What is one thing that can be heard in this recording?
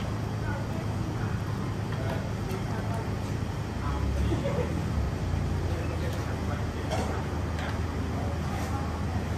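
A metal strainer clinks against a pot.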